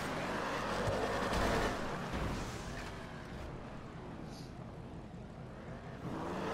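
A car engine roars as the car speeds along.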